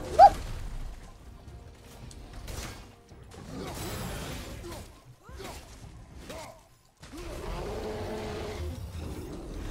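A huge creature roars and growls.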